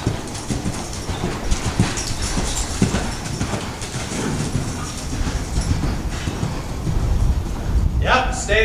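A horse's hooves thud rhythmically on soft dirt as it canters.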